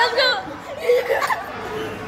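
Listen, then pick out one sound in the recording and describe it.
Young boys laugh and chatter loudly close by.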